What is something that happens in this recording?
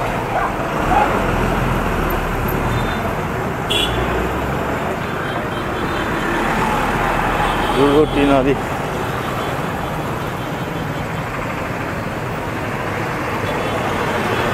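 Motorbikes pass close by.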